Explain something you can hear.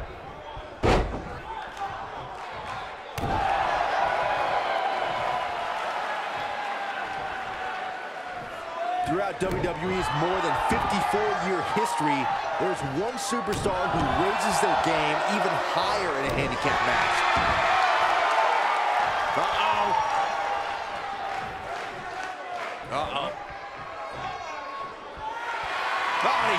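A crowd cheers and roars loudly in a large arena.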